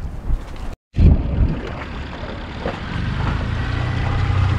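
A small outboard motor hums steadily.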